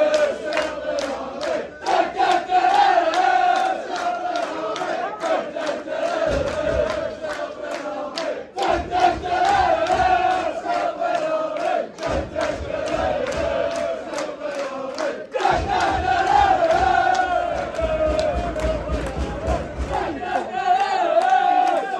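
A crowd of young men sings a loud chant together outdoors.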